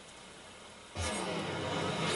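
A magic spell whooshes and swells.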